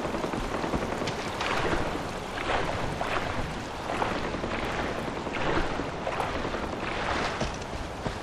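Water splashes and sloshes as someone wades through it.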